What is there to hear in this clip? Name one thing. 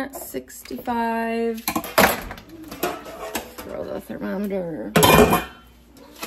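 A metal lid clatters as it is lifted off a cooker.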